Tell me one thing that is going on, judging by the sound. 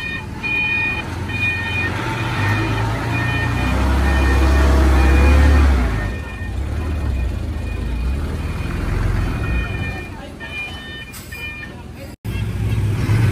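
A heavy dump truck engine rumbles as the truck reverses slowly.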